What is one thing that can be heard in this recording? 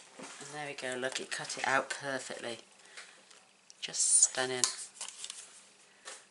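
Paper rustles and slides as it is handled.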